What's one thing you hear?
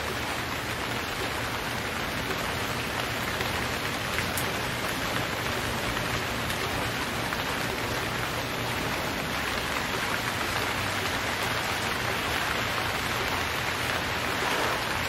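A paddle splashes through water in steady strokes.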